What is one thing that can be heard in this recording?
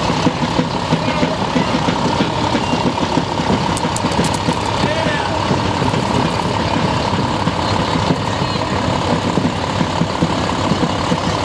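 A bus engine hums as it drives slowly along the road.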